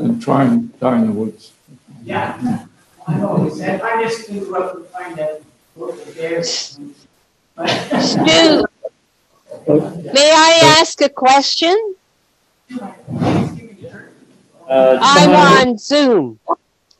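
An elderly man talks calmly over an online call.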